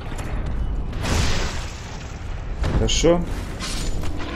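A sword strikes and slashes with metallic clangs.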